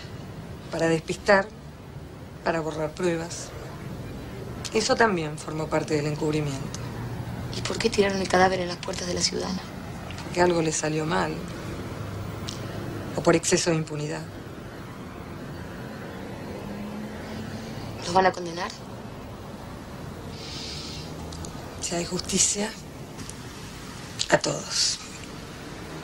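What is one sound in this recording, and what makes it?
A woman speaks calmly and earnestly, close by.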